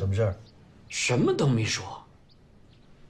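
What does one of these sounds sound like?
An elderly man answers in a low, earnest voice.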